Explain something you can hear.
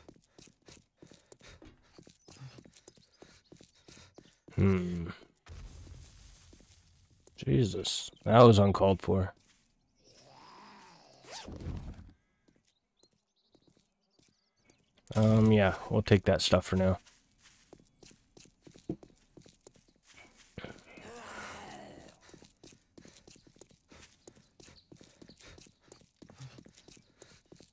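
Footsteps tap steadily on pavement and grass.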